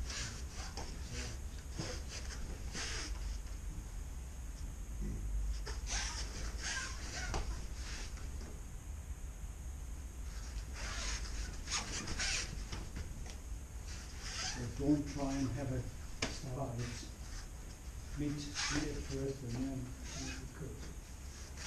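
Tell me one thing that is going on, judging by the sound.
Bare feet slap and shuffle on a padded mat.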